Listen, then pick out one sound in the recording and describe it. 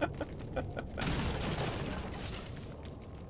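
A wooden barrel smashes apart.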